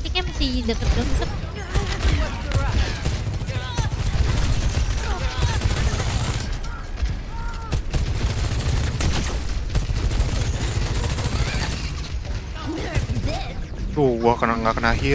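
Rapid gunfire and weapon blasts ring out.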